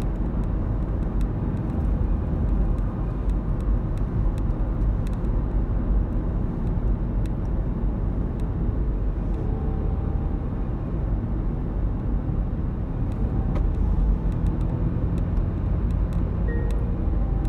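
Tyres roll over asphalt with a low, steady rumble.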